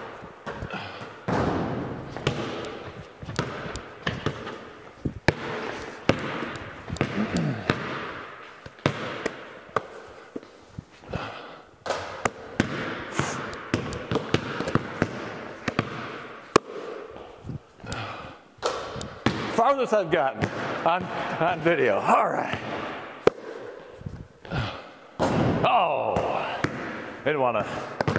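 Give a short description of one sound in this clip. A basketball clangs off a hoop's rim and backboard.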